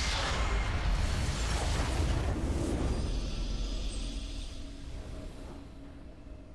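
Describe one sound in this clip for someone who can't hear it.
A loud rumbling explosion booms and slowly fades.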